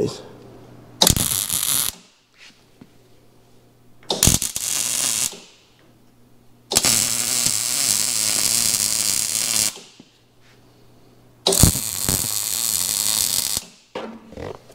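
A welder crackles and buzzes in short bursts.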